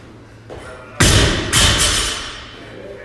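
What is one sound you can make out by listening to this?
A heavy barbell drops and bangs onto a rubber floor.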